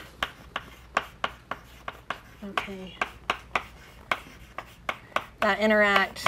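Chalk taps and scratches quickly on a blackboard.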